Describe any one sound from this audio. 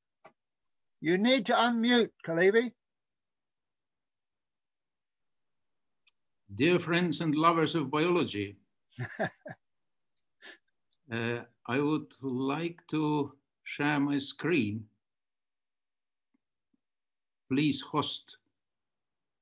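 An elderly man speaks warmly over an online call, with pauses.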